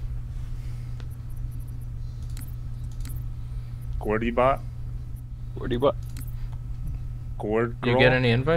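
Soft menu clicks sound as options are selected.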